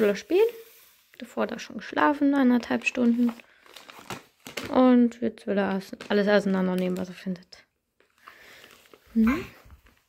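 A plastic wipes packet crinkles.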